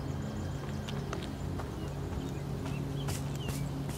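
Footsteps crunch on a path.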